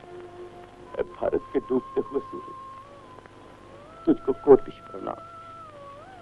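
An elderly man speaks softly, close by.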